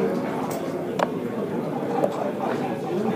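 Plastic game pieces click against a wooden board.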